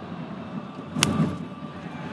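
A bat cracks sharply against a ball.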